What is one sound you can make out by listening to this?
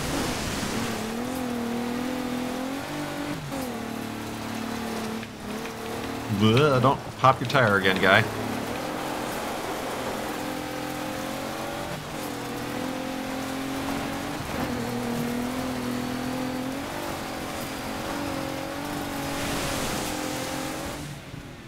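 A rally car engine revs and drones steadily, shifting up and down through gears.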